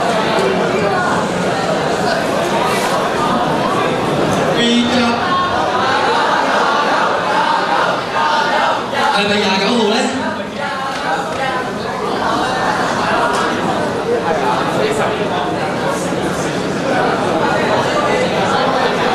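Young men speak to a crowd through microphones over loudspeakers.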